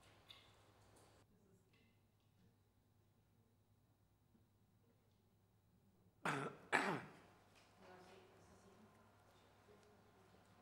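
A man speaks quietly through a microphone in a large room.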